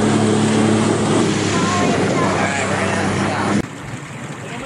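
A jet ski engine roars loudly at speed.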